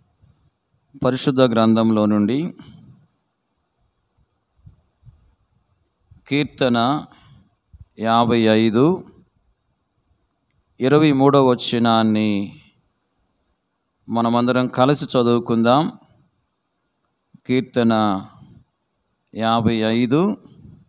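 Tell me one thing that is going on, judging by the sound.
A middle-aged man reads aloud slowly and loudly into a microphone, in short phrases with pauses.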